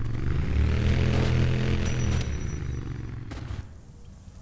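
A motorcycle engine roars loudly.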